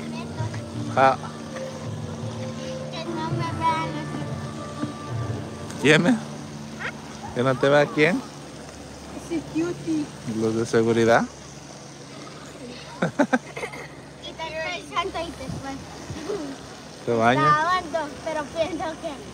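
Young children talk and laugh close by.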